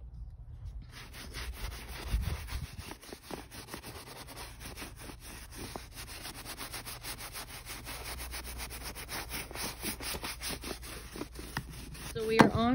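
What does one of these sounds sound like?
A brush scrubs over a fabric cushion with quick, rough strokes.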